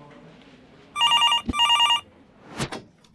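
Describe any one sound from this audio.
A desk phone rings twice.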